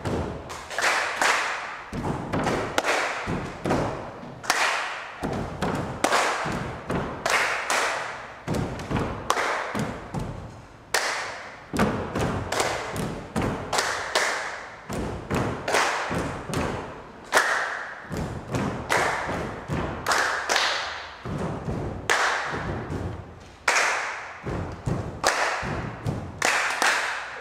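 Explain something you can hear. Bare feet step and shuffle on a wooden floor.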